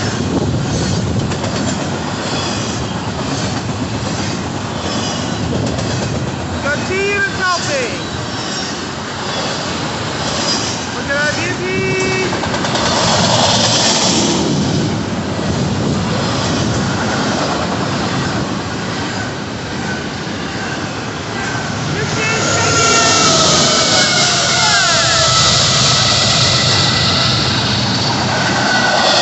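A long freight train rumbles and clatters past close by.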